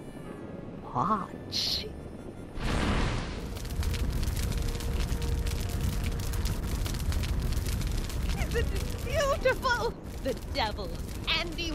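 An elderly woman exclaims with animation.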